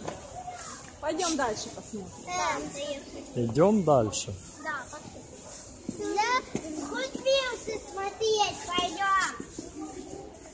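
A young child talks excitedly nearby.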